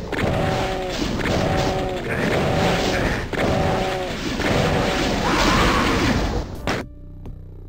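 Fireballs whoosh and burst with loud explosions.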